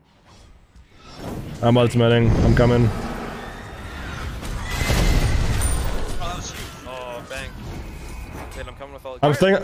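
Game fighting sounds and magic blasts play out with whooshes and bursts.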